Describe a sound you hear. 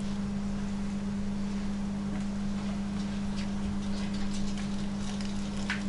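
Hands squeeze and twist a soft, wet sausage casing.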